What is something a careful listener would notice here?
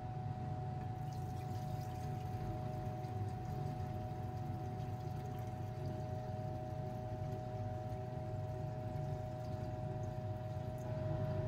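Oil pours in a thin stream into a glass beaker.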